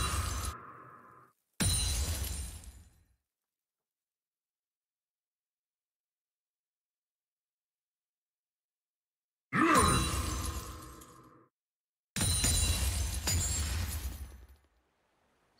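Magic blasts and metallic clashes ring out in short bursts.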